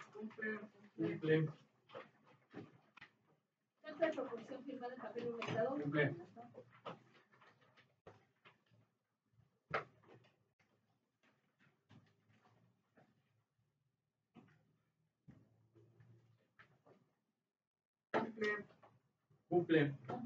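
A man speaks at a distance in a room with some echo, pausing now and then.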